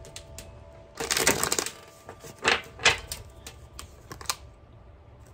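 Playing cards rustle and flick as a deck is shuffled.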